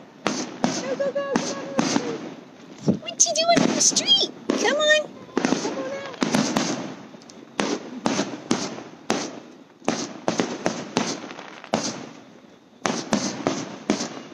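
Fireworks bang loudly in quick bursts nearby.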